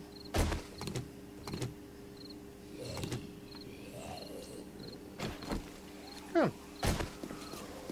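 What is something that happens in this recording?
Heavy footsteps thud at an uneven pace.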